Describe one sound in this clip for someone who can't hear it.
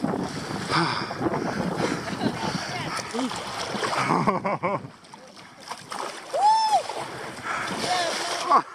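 Water splashes as people wade and crawl through a shallow muddy stream.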